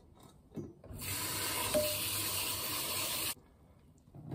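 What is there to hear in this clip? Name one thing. Tap water splashes steadily into a pot.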